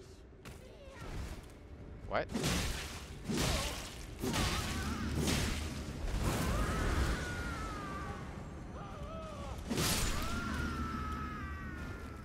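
Swords clash and slash in quick, loud blows.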